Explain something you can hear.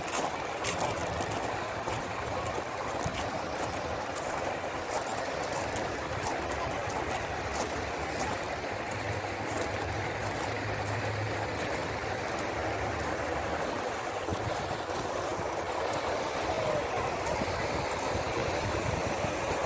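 Footsteps crunch on gravel close by.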